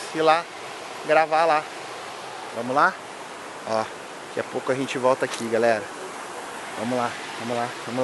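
A shallow stream rushes and burbles over rocks.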